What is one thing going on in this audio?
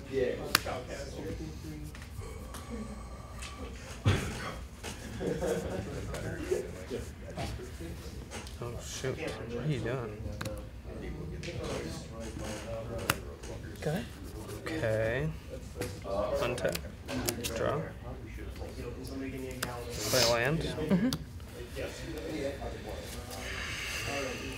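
Playing cards rustle as they are shuffled in hands.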